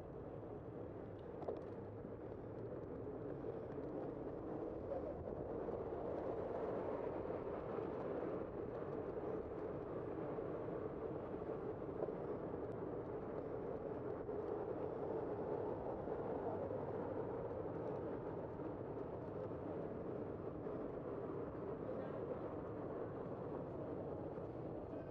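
A car drives along a city street with a steady road rumble.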